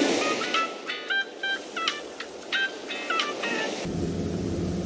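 Soft game blips chirp in a quick pattern.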